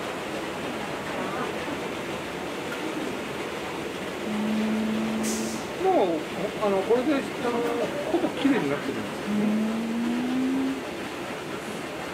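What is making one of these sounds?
A washing machine drum turns with a steady hum.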